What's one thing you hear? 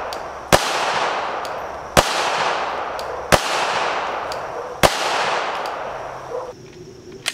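A pistol fires single shots at a steady pace outdoors, each echoing and fading.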